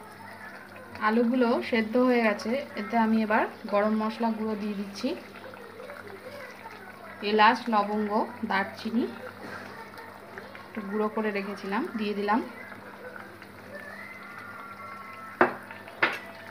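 Curry simmers and bubbles gently in a pot.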